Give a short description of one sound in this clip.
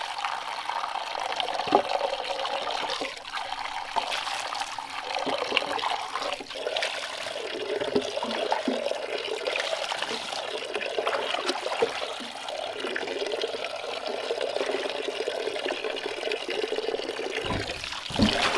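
Water pours and splashes from a bamboo tube into a wooden trough.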